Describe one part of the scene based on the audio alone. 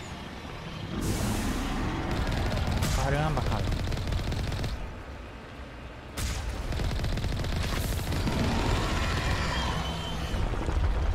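A large creature roars and crashes nearby.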